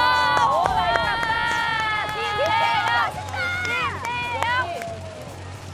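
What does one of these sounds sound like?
Young women cheer and shout loudly nearby.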